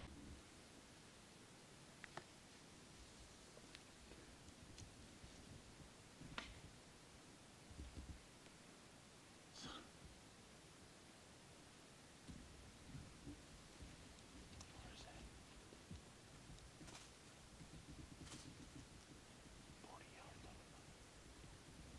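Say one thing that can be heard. Dry leaves rustle and crunch under a deer's hooves nearby.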